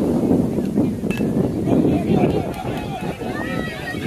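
A metal bat strikes a ball with a sharp ping.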